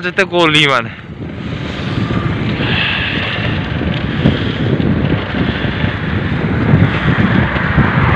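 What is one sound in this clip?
A vehicle drives steadily along a road with a low rumbling road noise.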